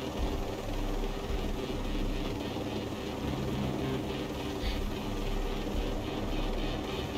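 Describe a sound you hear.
A helicopter's rotor drones steadily in flight.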